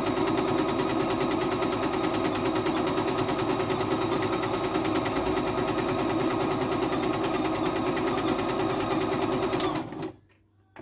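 A sewing machine runs steadily, stitching with a fast rattling hum.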